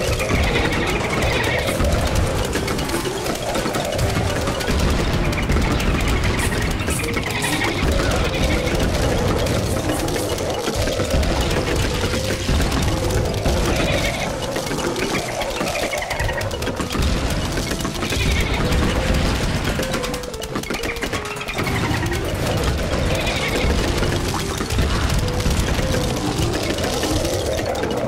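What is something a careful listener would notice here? Background game music plays with a steady tune.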